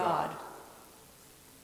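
A woman reads aloud through a microphone and finishes.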